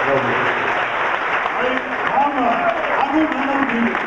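A crowd claps along in rhythm.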